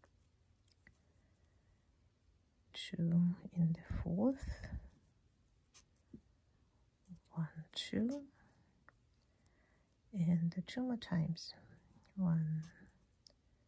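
A metal crochet hook softly scrapes through yarn.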